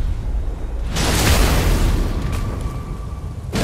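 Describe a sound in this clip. A magic spell bursts with a loud whooshing crackle.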